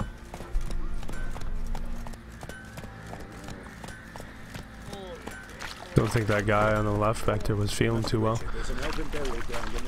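Horse hooves clop steadily on packed ground.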